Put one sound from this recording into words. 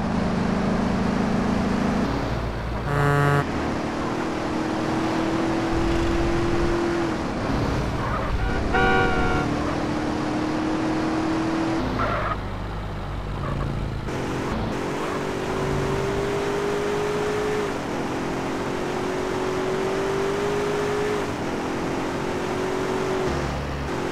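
A car engine hums and revs steadily as it drives.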